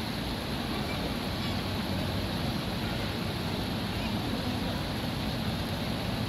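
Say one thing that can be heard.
A shallow stream ripples and splashes over rocks.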